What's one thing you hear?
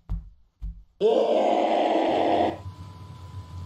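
A creature lets out a loud, harsh shriek.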